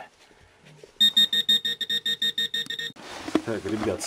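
A metal detector gives out a steady electronic tone.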